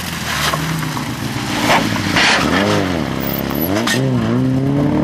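Tyres skid and spray gravel on a loose road.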